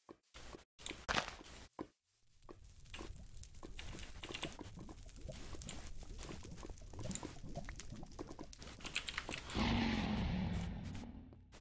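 Game footsteps tap over grass and stone.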